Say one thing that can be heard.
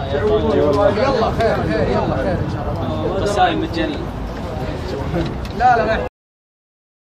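Several men talk and shout excitedly nearby.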